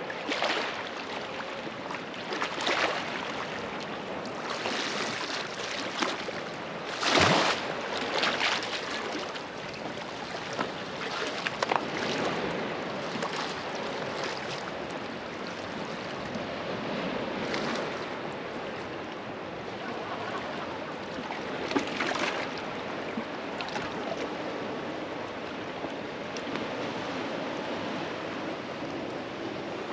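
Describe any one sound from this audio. Small waves lap gently against rocks along the shore.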